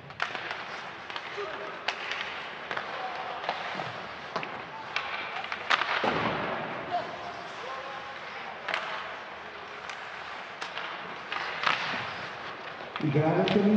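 Ice skates scrape and hiss across the ice in a large echoing arena.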